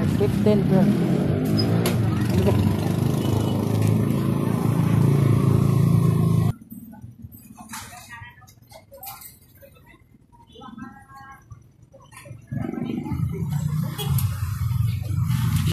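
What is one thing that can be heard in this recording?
A motorcycle engine idles close by with a low rumble.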